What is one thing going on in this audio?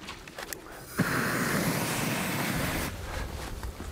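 A flame bursts out with a loud whooshing roar.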